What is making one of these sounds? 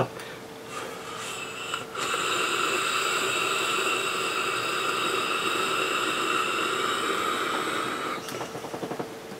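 A vape device hisses and crackles as a man inhales.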